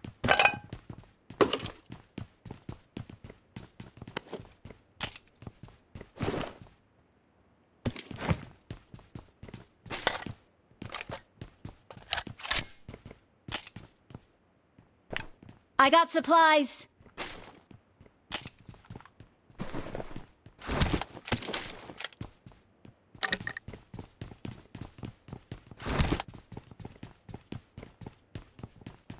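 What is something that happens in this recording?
Footsteps run across a wooden floor.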